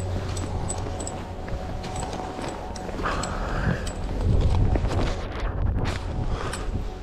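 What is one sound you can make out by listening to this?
Wind rumbles against a microphone outdoors.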